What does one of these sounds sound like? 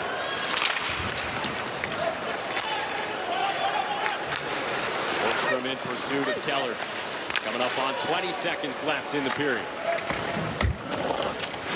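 Hockey sticks click sharply against a puck.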